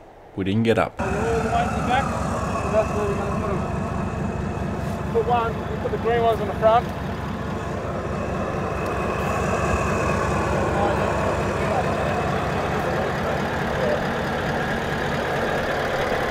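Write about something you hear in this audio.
A car engine idles close by.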